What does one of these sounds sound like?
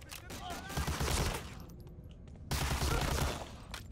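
A shotgun fires loudly in short, booming blasts.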